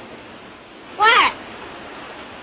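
A young woman calls out from a distance.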